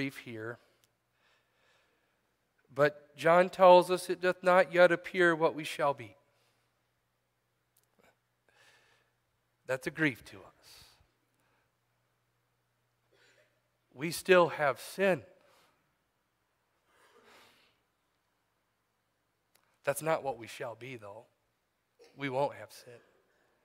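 A middle-aged man reads aloud slowly through a microphone, with long pauses between phrases.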